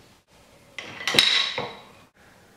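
Metal tools clank against a steel vise.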